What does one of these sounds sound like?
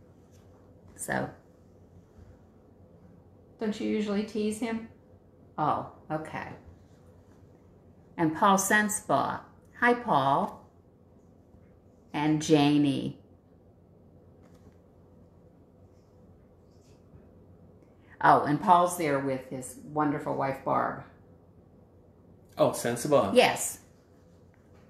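A middle-aged woman speaks calmly and close by, in short phrases with pauses.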